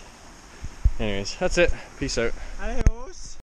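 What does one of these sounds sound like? A man speaks close by, in a low, calm voice.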